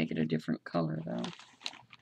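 Paper rustles as a hand handles it.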